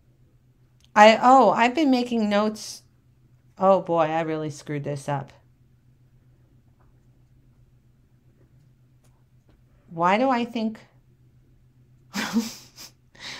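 A woman talks calmly and close by, in short bursts with pauses.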